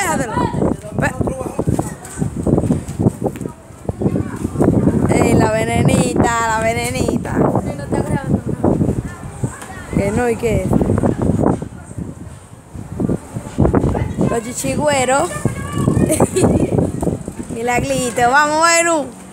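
A young girl talks and calls out nearby, her voice rising and falling.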